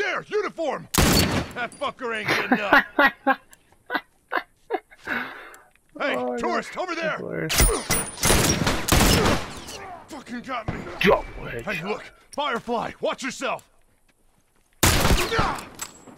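A rifle fires a few sharp, loud shots.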